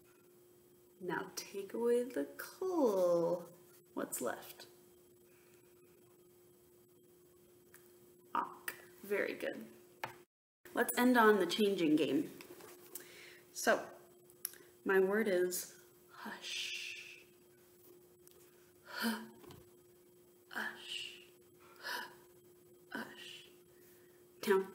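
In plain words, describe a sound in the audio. A young woman speaks calmly and expressively close to a microphone, with pauses.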